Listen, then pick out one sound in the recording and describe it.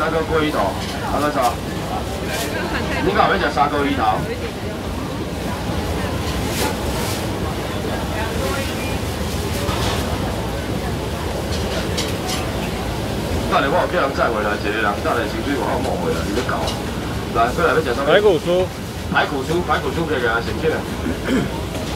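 A crowd murmurs steadily outdoors.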